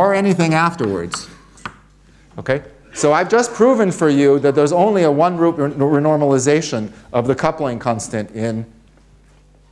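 An elderly man lectures aloud, his voice carrying through a microphone.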